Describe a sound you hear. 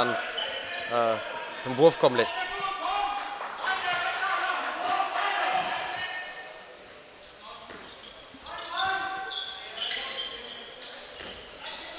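Sports shoes squeak sharply on a hall floor.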